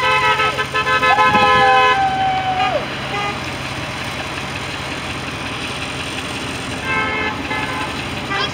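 Car horns honk loudly nearby.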